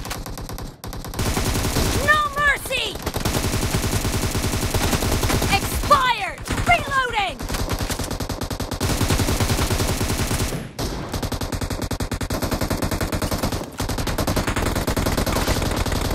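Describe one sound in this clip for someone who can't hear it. Automatic gunfire rattles rapidly in a video game.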